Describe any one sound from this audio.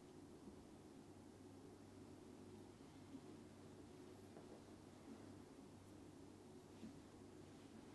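A hand softly rustles against a cloth towel.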